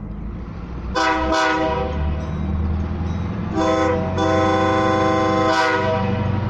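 A train horn blares in loud, long blasts.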